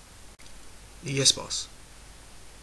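A young man speaks briefly.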